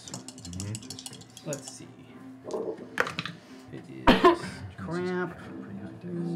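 Several men talk and laugh around a table.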